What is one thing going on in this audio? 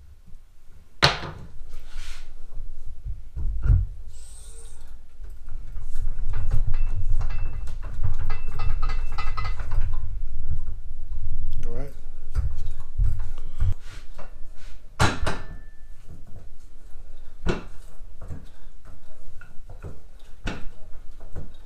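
A floor jack's handle clicks and clunks as it is pumped.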